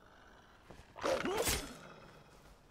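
A sword swings and strikes with a sharp clash.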